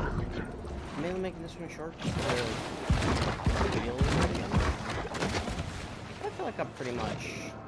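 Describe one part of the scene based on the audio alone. A young man talks casually close to a microphone.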